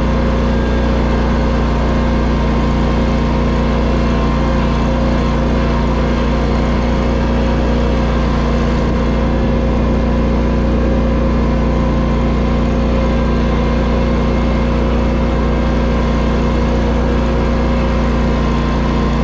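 Tyres crunch over gravel.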